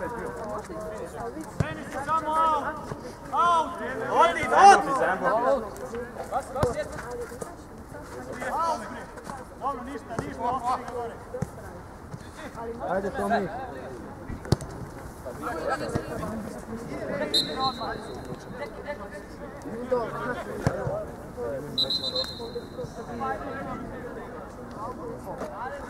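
Men shout and call out across an open outdoor pitch.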